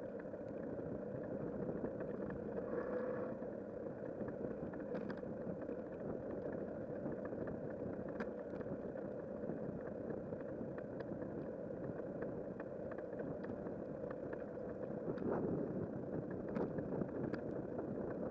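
A bicycle rattles and clicks over a rough path.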